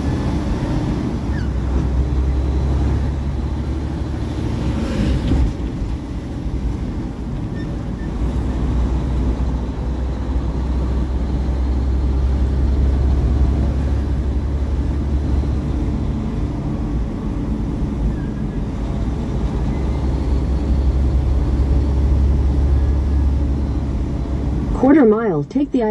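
A car's engine hums and its tyres rumble steadily on the road, heard from inside the car.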